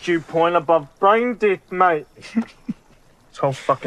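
A young man speaks in a mocking tone, close by.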